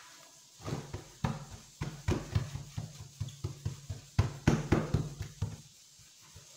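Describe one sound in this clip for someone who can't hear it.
Hands pat and press soft dough on a table with dull, quick thuds.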